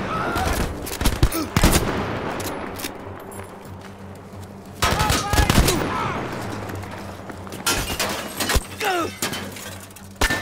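A bolt action rifle clacks as it is worked.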